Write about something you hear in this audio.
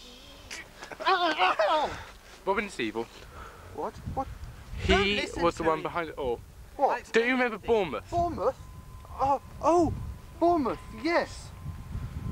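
A young man talks close up, with animation.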